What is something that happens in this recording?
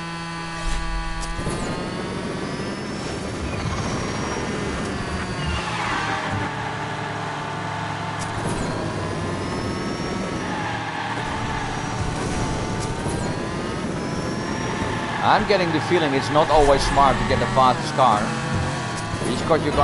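Racing car engines whine and roar steadily, rising and falling in pitch.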